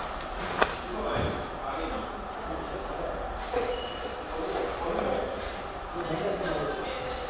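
Several men talk in the background of an echoing room.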